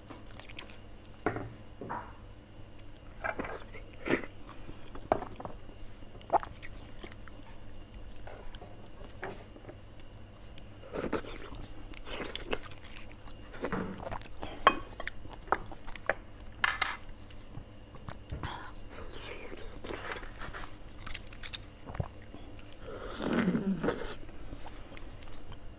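A utensil scrapes marrow out of a bone.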